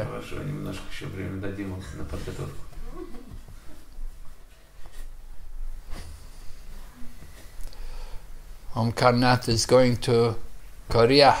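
An elderly man speaks calmly and warmly close by, pausing now and then.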